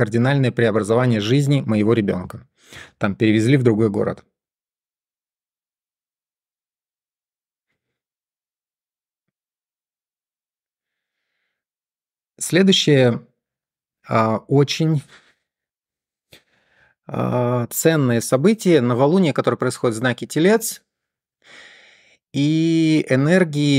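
A man talks calmly and closely into a microphone, with pauses.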